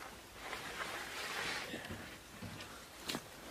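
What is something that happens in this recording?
A wooden board scrapes as it is slid along.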